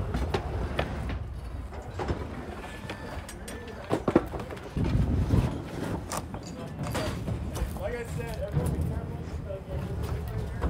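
Wooden junk clatters and bangs as it is tossed onto a pile.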